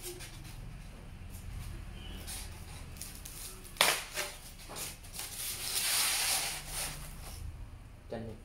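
Styrofoam sheets rub and squeak as they are lifted out of a box.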